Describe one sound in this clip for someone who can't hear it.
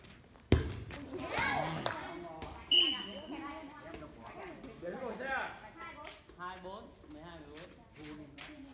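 Young women call out and chatter during play.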